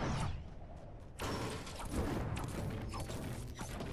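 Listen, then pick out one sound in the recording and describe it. A pickaxe strikes a wall with sharp knocks.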